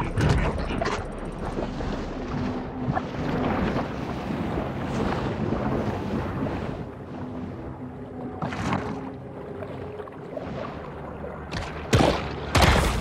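A muffled underwater rumble drones steadily.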